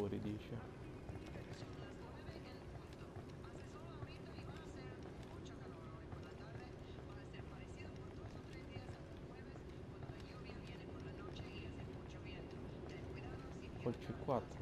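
Footsteps shuffle softly on a concrete floor.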